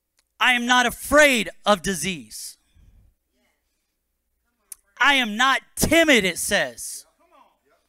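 A man speaks with animation into a microphone, in short bursts.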